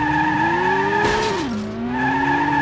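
Tyres screech as a racing car slides through a corner.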